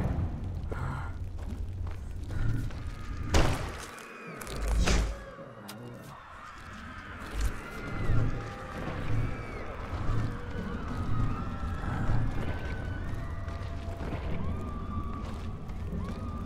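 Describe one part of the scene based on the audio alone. Swords clash and slash against creatures in a game.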